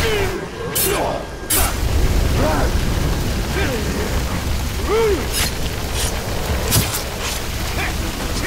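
Swords clash and strike in quick blows.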